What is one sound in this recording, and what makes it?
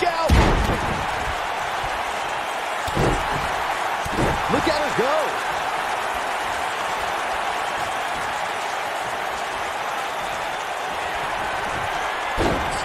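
Heavy thuds land on a wrestling ring mat.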